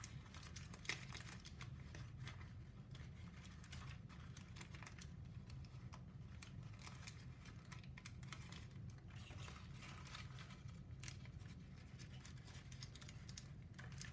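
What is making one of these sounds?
Stiff paper crinkles and rustles as it is folded and handled.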